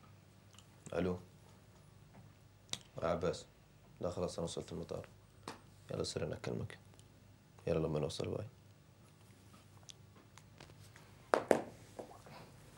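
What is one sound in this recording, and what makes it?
A young man speaks calmly in short phrases with long pauses, close by.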